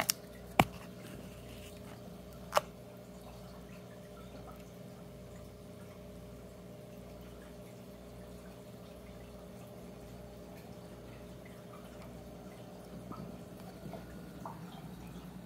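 An aquarium filter hums steadily.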